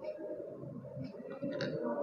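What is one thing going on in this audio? A glass tube clinks softly against a plastic rack.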